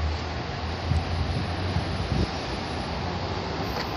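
A metal gate rattles as it is pulled open.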